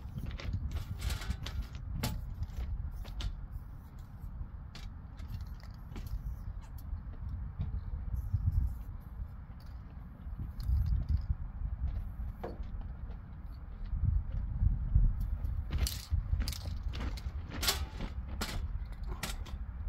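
A metal stepladder clanks as someone climbs it.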